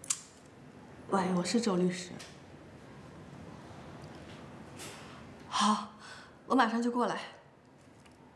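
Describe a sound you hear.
A young woman talks on a phone, calmly and close by.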